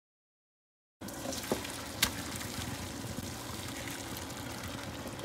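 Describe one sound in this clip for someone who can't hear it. Hot water pours noisily into a metal sink.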